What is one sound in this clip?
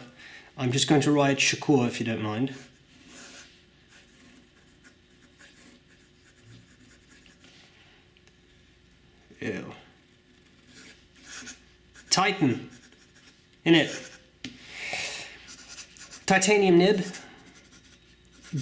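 A pen nib scratches softly across paper.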